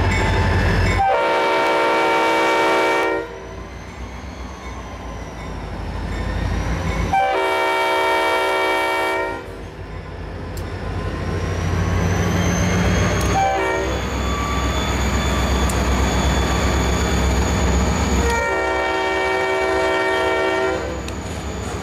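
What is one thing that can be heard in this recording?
A train horn blows in several long blasts.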